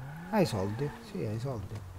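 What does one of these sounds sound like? A car engine hums as a car drives along a road.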